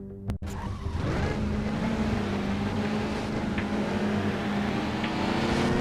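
A large truck engine rumbles deeply.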